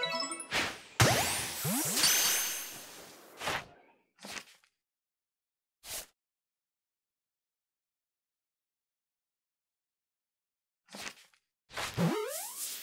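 Tall grass rustles as someone walks through it.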